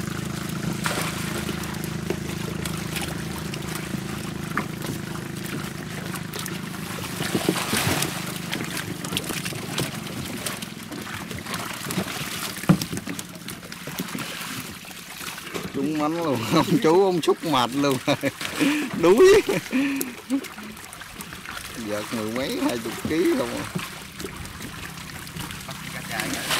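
A net scoop sloshes through water.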